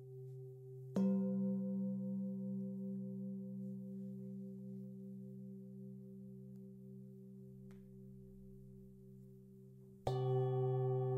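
A mallet strikes a singing bowl, and a new ringing tone swells out.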